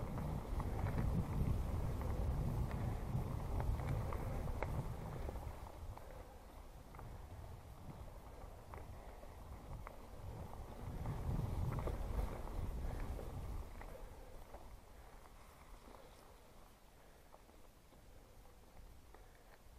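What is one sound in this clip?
Bicycle tyres crunch over a dirt trail.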